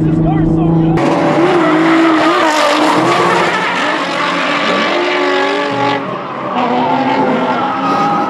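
Tyres squeal on asphalt as a car drifts.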